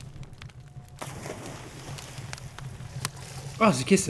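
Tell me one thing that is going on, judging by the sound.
Water splashes as something plunges in.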